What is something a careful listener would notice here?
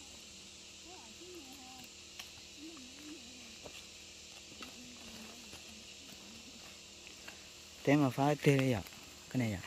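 A hand hoe chops and scrapes into dry soil.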